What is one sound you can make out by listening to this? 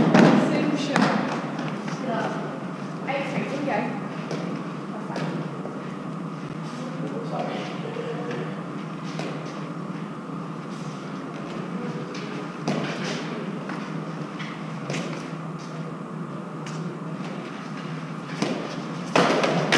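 A gloved hand slaps a hard ball against a stone wall.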